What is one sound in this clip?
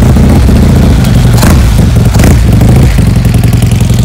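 A motorcycle engine revs up sharply and settles back down.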